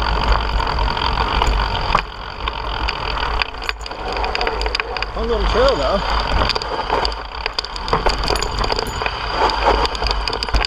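Bike tyres rattle and crunch over a rocky dirt trail.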